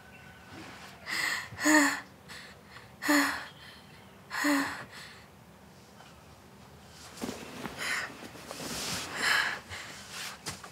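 A young woman gasps and breathes heavily, close by.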